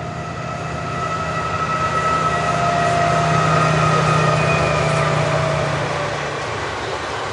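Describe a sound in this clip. A diesel locomotive engine rumbles past at a distance.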